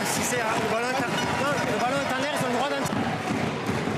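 A stadium crowd cheers and shouts.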